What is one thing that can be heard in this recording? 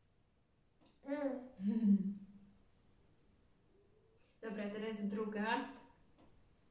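A young woman speaks warmly and playfully nearby.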